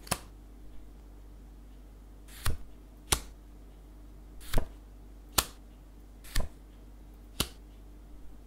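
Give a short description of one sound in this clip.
Playing cards snap down onto a wooden table one by one.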